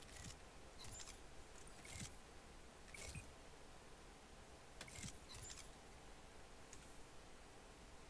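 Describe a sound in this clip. Short digital menu clicks and swishes sound as options are selected.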